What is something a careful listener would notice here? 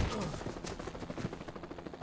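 A man grunts in pain.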